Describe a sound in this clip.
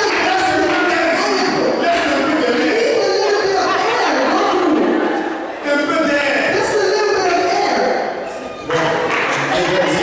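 A woman speaks through a microphone, heard over loudspeakers.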